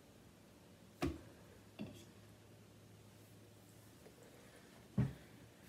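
A fork clinks against a ceramic bowl.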